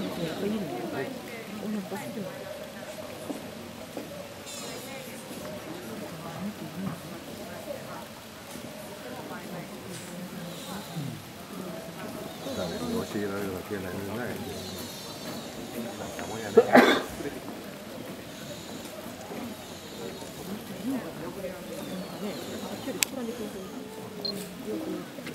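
A deer licks a newborn fawn with soft, wet sounds.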